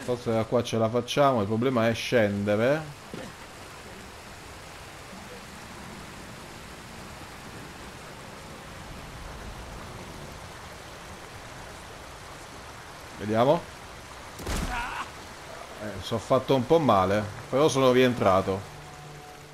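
Water rushes steadily down a waterfall.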